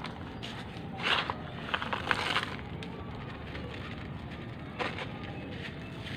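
Grains patter and trickle as they fall from a hand.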